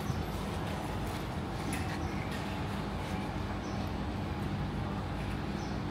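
Footsteps tap on pavement nearby.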